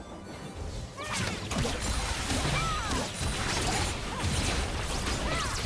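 Video game spell effects whoosh, crackle and clash in a busy battle.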